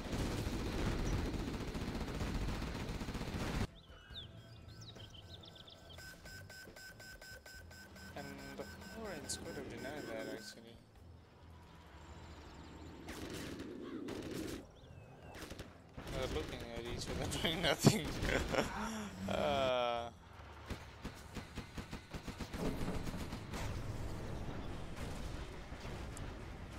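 Tank guns fire and shells explode in a battle.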